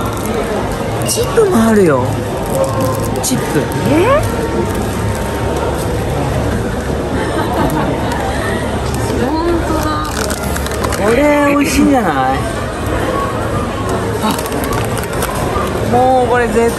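Plastic snack packets crinkle in a hand.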